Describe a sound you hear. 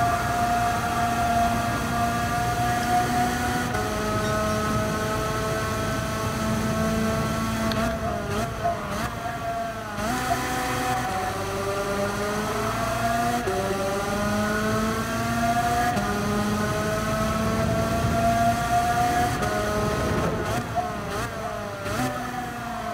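A kart engine whines steadily, rising and dropping in pitch as the kart speeds up and slows for corners.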